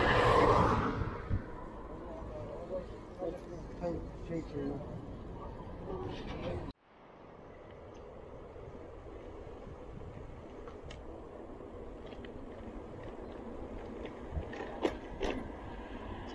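Bicycle parts rattle over bumps.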